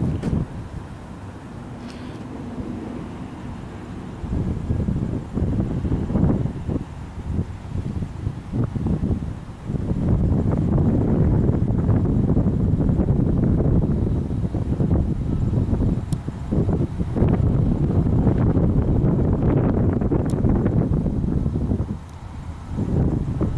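Strong wind gusts and buffets loudly outdoors.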